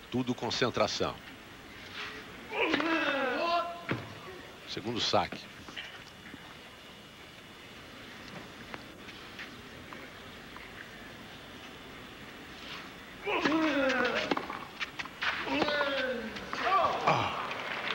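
A tennis ball is struck sharply with a racket, several times.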